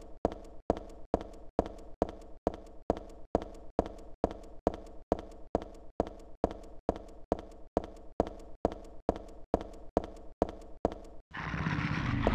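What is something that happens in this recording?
Quick footsteps echo on a hard floor.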